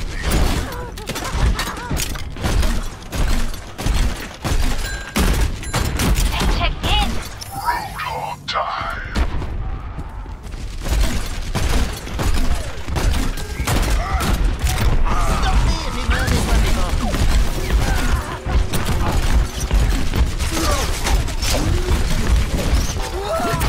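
A rapid-fire gun shoots in quick, loud bursts.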